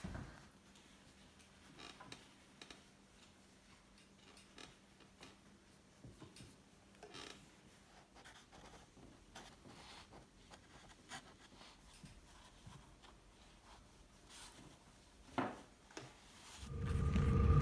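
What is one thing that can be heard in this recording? A brush dabs and strokes softly on paper.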